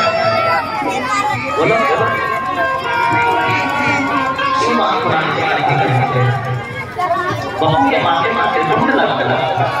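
Loud music plays from loudspeakers nearby.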